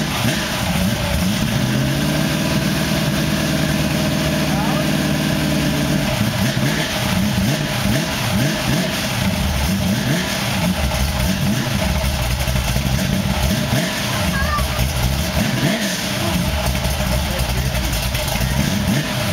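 A car engine idles loudly with a deep exhaust rumble, revving now and then.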